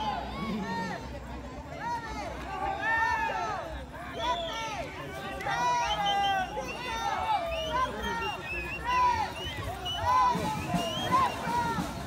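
A crowd of spectators shouts and whistles outdoors.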